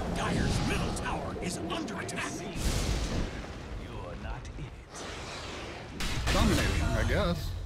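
Blows and impacts clash in a fight.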